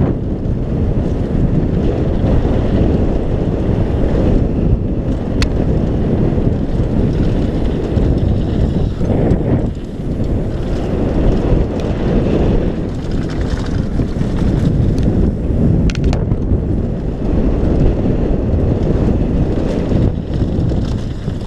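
Bike tyres crunch and rattle over a dirt trail.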